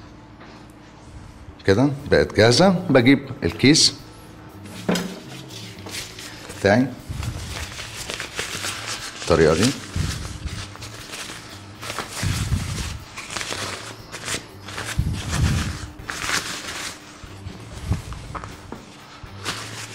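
Hands squish and mix soft dough in a bowl.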